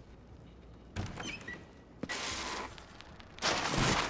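Glass doors swing open.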